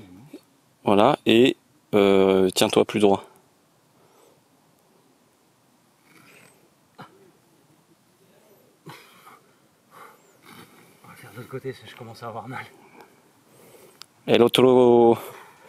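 A young man talks loudly and close by, in short bursts.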